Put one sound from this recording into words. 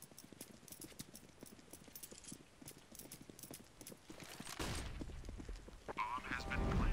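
Quick footsteps tap on stone.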